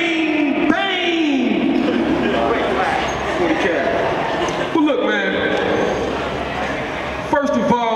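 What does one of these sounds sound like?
A second young man raps into a microphone over loudspeakers.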